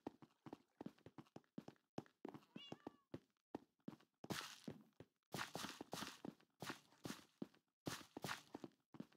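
Footsteps tap quickly along a stone path.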